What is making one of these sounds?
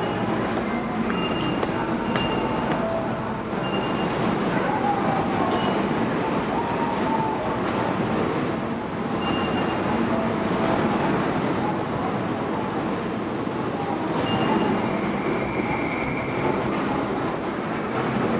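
Footsteps echo on a hard floor in a large hall.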